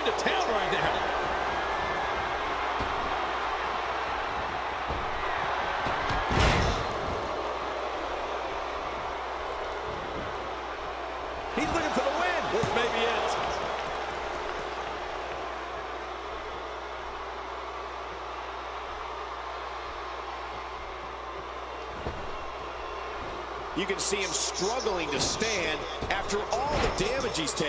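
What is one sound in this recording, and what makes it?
A large arena crowd roars and cheers.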